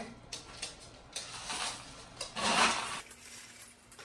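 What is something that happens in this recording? Soil pours and rustles into a pot.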